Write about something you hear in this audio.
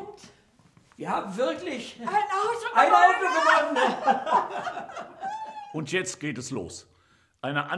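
An elderly man answers loudly with animation.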